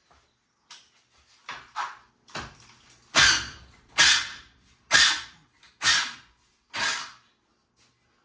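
A metal bar strikes a metal railing several times with ringing clangs.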